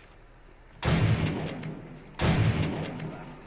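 A shotgun fires two loud blasts.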